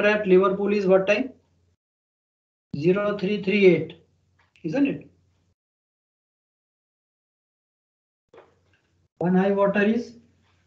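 A man speaks calmly into a close microphone, explaining in short phrases.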